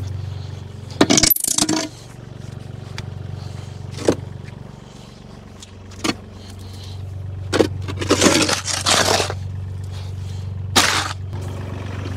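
A shovel scrapes across wet concrete.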